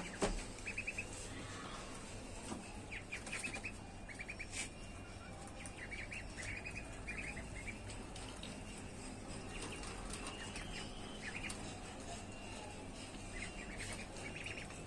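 Ducklings peck and rustle in dry bedding.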